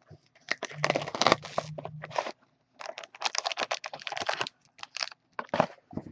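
A cardboard box slides open.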